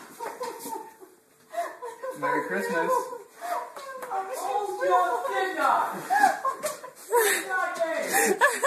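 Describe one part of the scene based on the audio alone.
A woman cries out tearfully close by.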